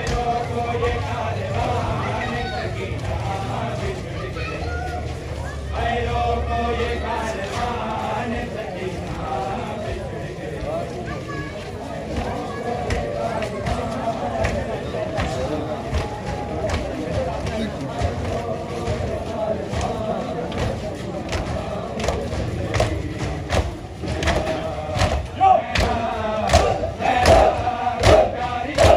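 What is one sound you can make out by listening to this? A crowd of men chants in a slow, mournful rhythm outdoors.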